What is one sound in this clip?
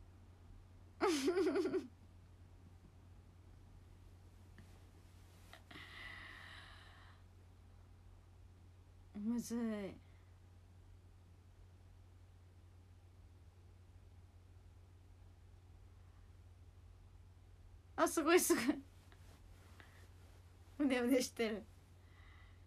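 A young woman speaks close by in short, quiet bursts.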